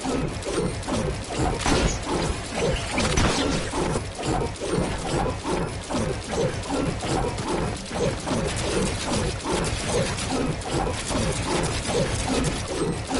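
Building pieces snap into place in quick succession.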